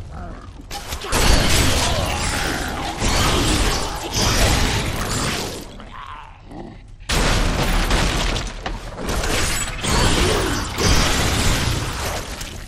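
Weapons strike monsters with heavy thuds.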